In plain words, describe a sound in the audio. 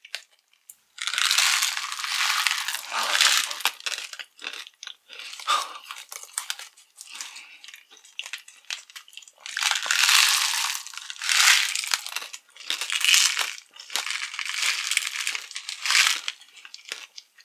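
A woman bites and crunches candy loudly, close to the microphone.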